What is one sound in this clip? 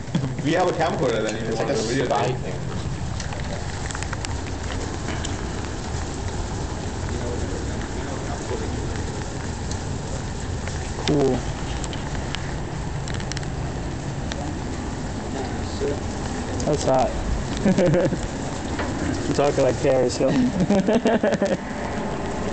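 A young man speaks nearby in short bursts.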